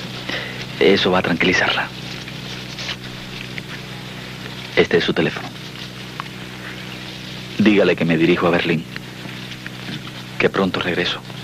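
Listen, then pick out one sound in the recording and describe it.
Two men talk calmly in short exchanges close by.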